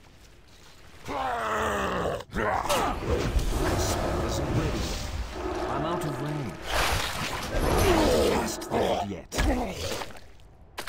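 Weapons strike repeatedly in a fight.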